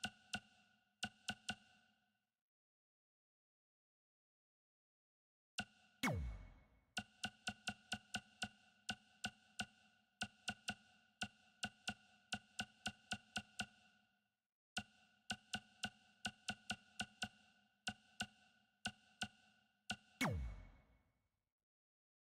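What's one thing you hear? Short pitched menu clicks tick quickly, one after another, in bursts.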